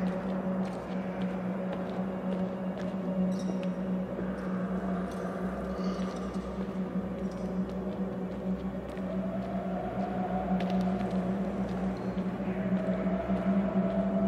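Footsteps scuff slowly over a gritty floor.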